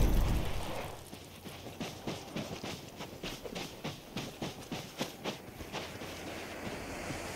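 Footsteps thump on wooden boards.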